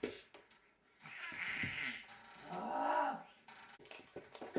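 A baby babbles close by.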